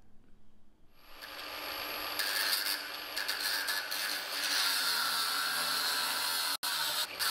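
An angle grinder whirs and grinds against metal with a harsh, steady hiss.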